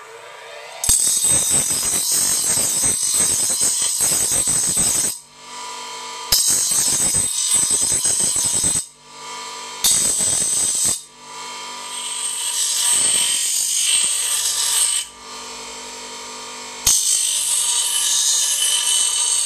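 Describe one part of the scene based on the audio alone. A bench grinder motor whirs steadily.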